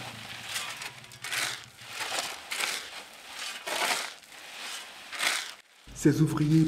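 Gravel is shovelled and thrown against a sieve in rhythmic rasping bursts.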